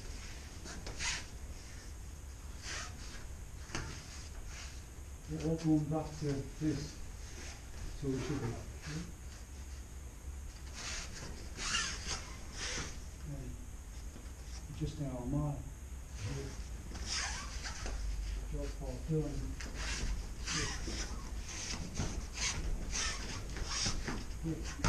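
Bodies thud and slap onto a padded mat.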